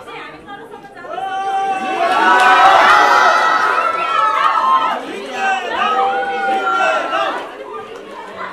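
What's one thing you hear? A crowd cheers and screams loudly.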